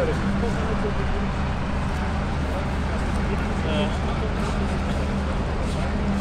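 A large truck engine idles nearby with a steady low rumble.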